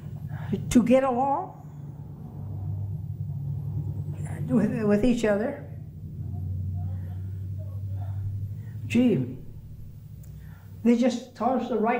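An elderly woman speaks calmly and close by, in short phrases with pauses.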